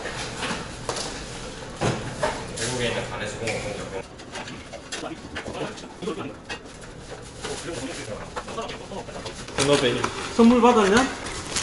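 Young men talk with one another nearby.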